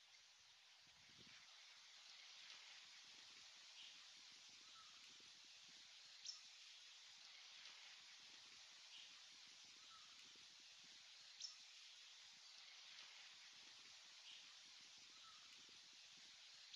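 Wind rustles the leaves of trees outdoors.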